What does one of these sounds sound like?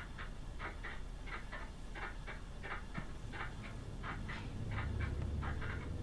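Footsteps creak slowly on a wooden floor.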